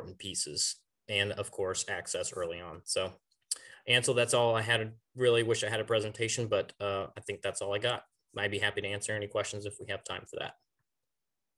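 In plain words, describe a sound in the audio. A young man speaks calmly over an online call.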